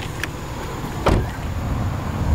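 A car door shuts with a solid thud.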